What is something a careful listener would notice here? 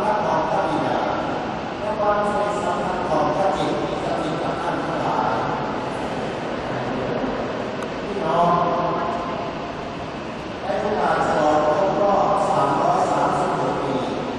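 A man chants steadily through loudspeakers, echoing in a wide open space.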